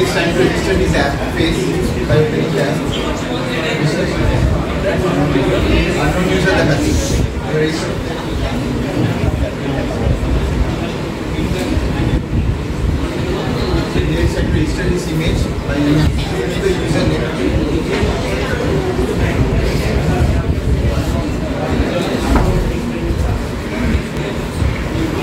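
A young man speaks calmly in an echoing room.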